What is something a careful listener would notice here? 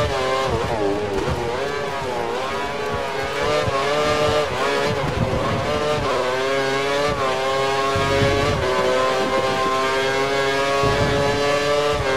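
A racing car engine screams at high revs, rising and falling as the gears shift.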